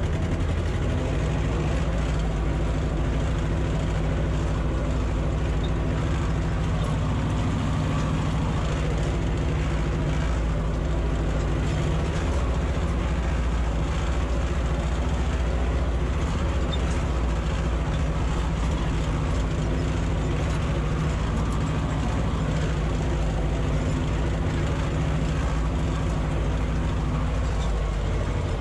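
A tractor engine chugs steadily up close.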